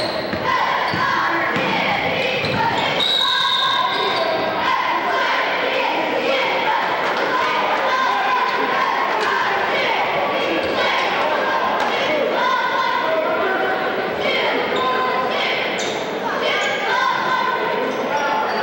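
A crowd talks and shouts in a large echoing gym.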